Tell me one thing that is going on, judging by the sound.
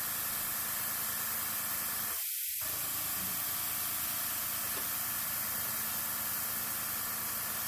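An airbrush hisses steadily with a soft spray of air.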